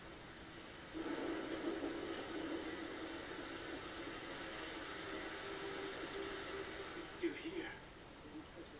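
A waterfall roars and splashes close by.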